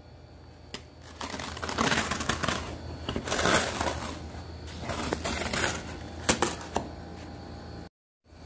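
Cardboard scrapes and rustles as a box is handled.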